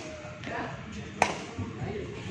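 A racket smacks a shuttlecock.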